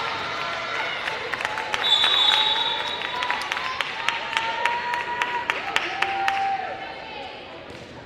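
A crowd cheers in a large echoing hall.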